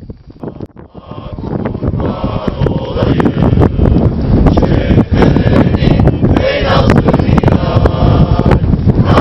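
A group of men and women sing together in unison outdoors.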